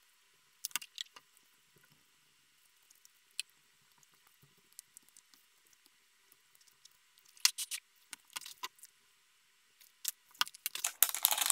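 Small tools click and tap against a hard surface.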